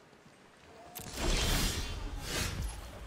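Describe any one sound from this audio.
A game sound effect swells with a bright fanfare.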